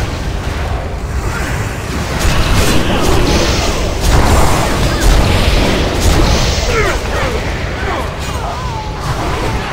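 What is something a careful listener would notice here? Spell blasts and weapon hits crash and whoosh in a chaotic fight.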